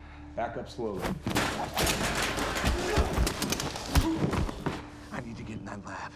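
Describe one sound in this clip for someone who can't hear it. Bodies thud and crash in a struggle.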